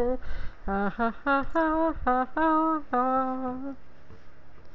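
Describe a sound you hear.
A young woman speaks with animation, in a drawn-out, sing-song voice, close to a microphone.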